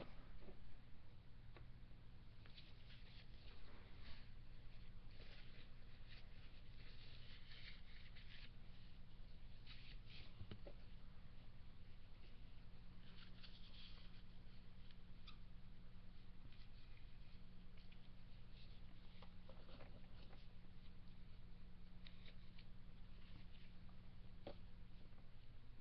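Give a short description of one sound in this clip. Small plastic toy pieces click and rattle as hands handle them.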